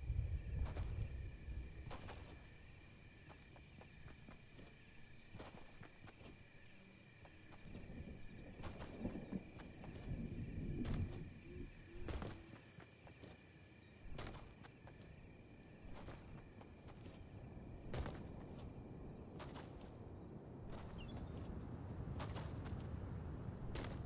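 Footsteps patter as a game character runs.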